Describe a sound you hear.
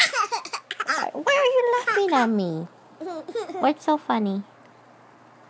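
A baby laughs close by.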